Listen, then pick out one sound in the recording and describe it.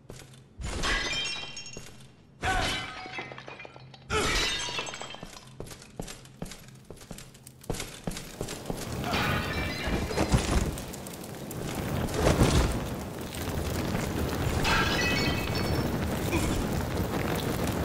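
Armoured footsteps clank on stone.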